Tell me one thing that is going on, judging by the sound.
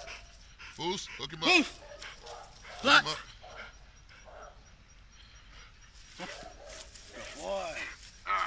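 A dog barks and growls loudly nearby.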